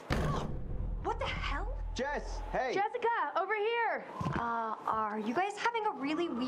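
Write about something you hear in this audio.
A young woman speaks in a startled, sarcastic voice.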